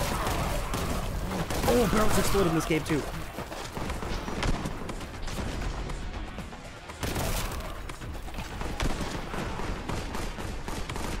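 A gun fires rapid shots.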